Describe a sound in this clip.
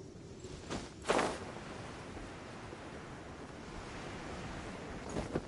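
A glider whooshes open with a swish of wind.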